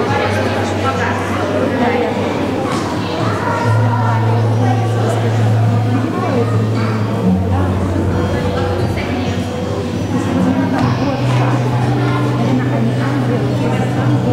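Young children chatter quietly in a large echoing hall.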